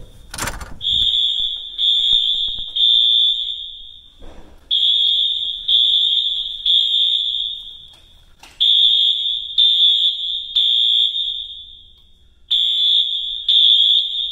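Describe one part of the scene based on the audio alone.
A fire alarm blares loudly in repeated bursts of three shrill beeps, echoing down a hallway.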